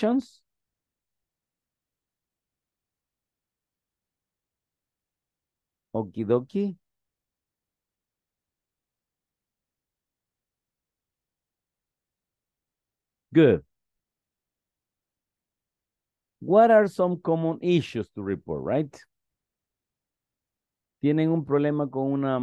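A man speaks calmly through an online call, with pauses.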